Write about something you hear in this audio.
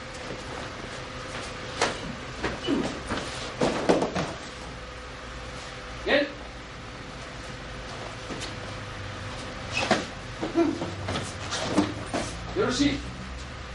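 Feet thump and shuffle on a padded mat.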